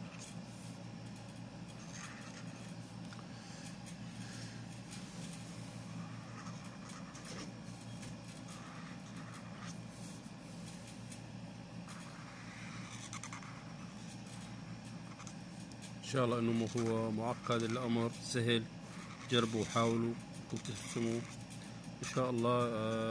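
A felt-tip marker squeaks and scratches softly on paper.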